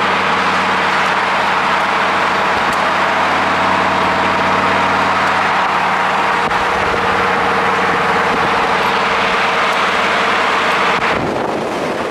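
A sports car engine hums steadily close by.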